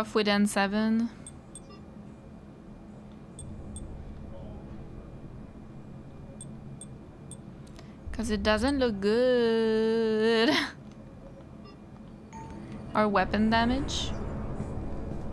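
A young woman talks and sings playfully close to a microphone.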